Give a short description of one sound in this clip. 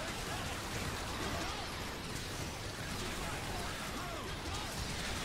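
Laser weapons zap and buzz in rapid bursts.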